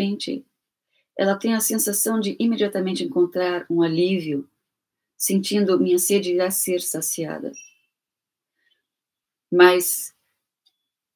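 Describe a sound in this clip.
A middle-aged woman speaks calmly and closely into a microphone, with pauses.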